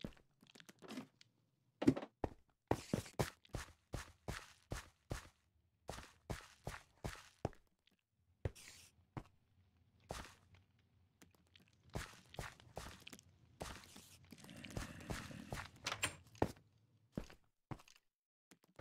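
Footsteps crunch steadily on stone and gravel.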